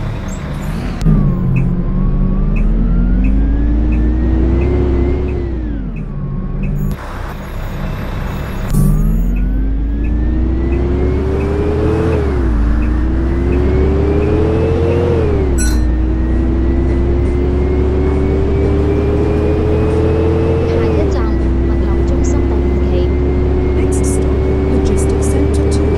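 A diesel bus engine revs up, dropping in pitch at each gear change.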